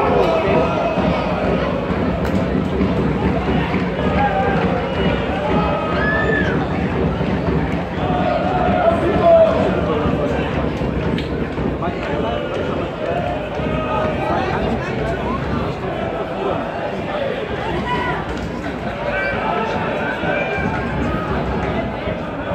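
Spectators shout and whistle in an open stadium.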